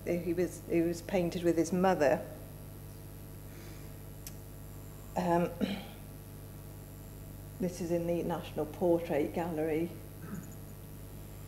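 A woman speaks calmly into a microphone, in pauses, heard through loudspeakers in a large room.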